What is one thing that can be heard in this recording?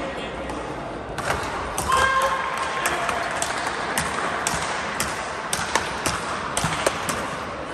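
Shoes squeak on a hard floor in a large echoing hall.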